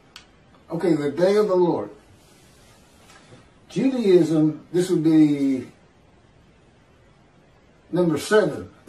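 An elderly man speaks calmly in pauses, close to a microphone.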